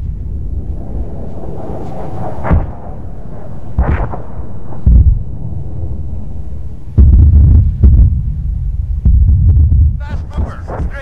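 Rockets roar as they streak through the sky.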